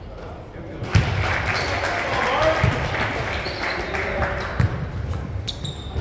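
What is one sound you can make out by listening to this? Young men call out and talk in a large echoing gym.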